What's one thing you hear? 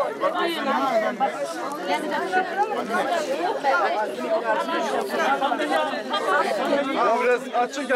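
A crowd of women wail and lament loudly close by, outdoors.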